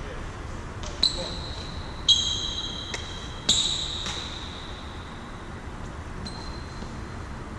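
Sneakers squeak sharply on a sports floor.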